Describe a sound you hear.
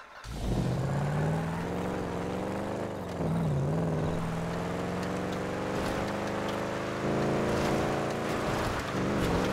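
A car engine revs hard and steadily.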